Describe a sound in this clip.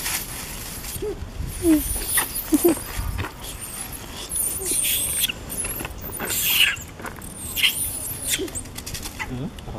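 A young monkey screams and squeals in distress.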